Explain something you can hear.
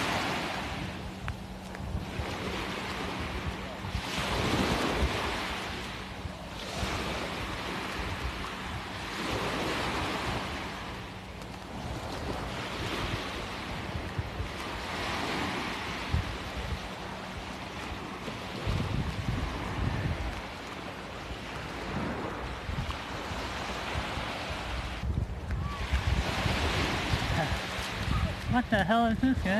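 Small waves wash up onto a sandy beach in gentle surges.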